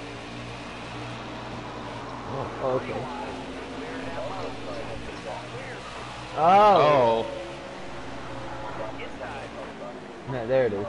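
Race car engines roar steadily.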